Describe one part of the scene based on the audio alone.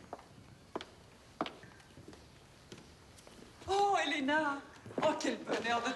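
Footsteps of high heels click on a hard floor.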